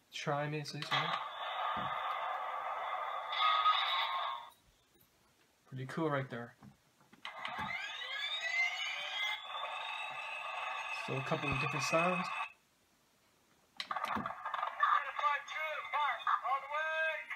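A toy tank plays electronic battle sound effects.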